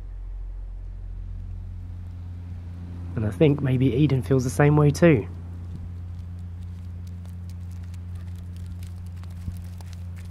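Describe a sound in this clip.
Footsteps crunch softly on a dry dirt path.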